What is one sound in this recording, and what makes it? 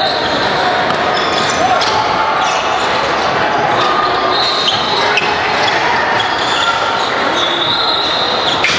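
Young players call out to each other.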